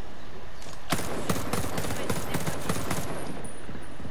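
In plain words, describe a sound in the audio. An assault rifle fires a rapid burst of shots.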